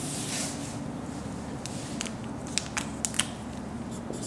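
A marker taps and squeaks on a whiteboard.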